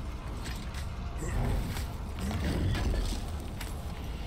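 A heavy stone chest lid grinds open and thuds.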